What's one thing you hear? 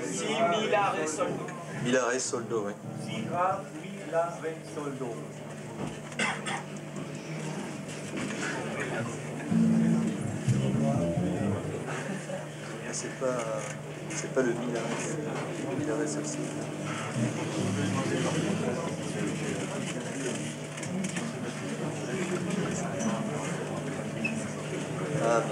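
An electric bass guitar plays a melodic line through an amplifier.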